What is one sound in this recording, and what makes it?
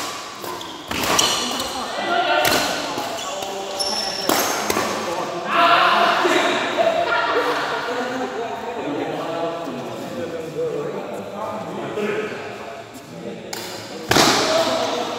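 Shuttlecocks are struck sharply with rackets in an echoing hall.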